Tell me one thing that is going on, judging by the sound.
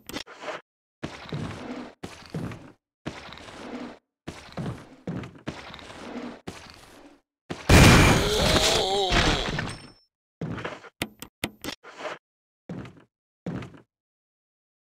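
Footsteps thud on a wooden floor.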